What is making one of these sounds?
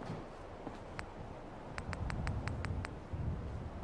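Soft menu clicks tick several times in quick succession.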